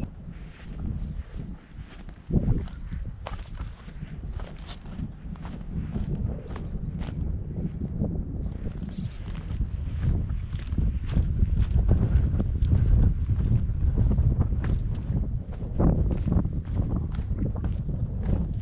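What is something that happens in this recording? A young man speaks calmly close to the microphone.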